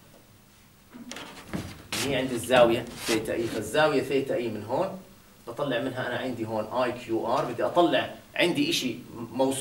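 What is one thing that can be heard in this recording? A middle-aged man speaks calmly and clearly to listeners nearby.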